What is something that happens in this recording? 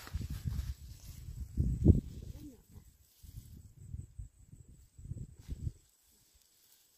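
Leaves rustle as hands pick plants close by.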